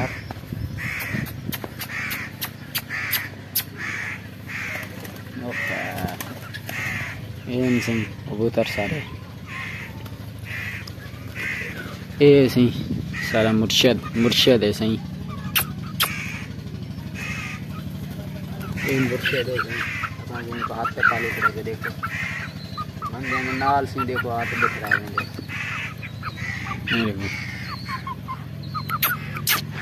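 A young chicken peeps repeatedly.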